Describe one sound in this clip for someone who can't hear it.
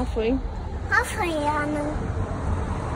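A toddler babbles in a high voice close by.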